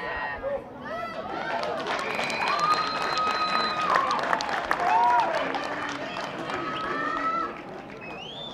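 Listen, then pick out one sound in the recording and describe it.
A crowd of spectators cheers and whoops.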